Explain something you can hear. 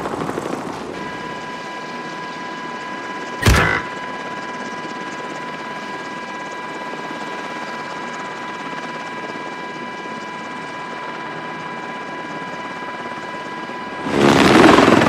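A helicopter engine hums steadily inside a cabin.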